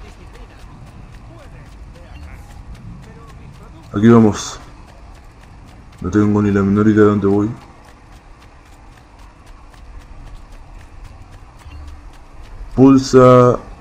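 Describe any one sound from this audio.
Footsteps run over stone paving.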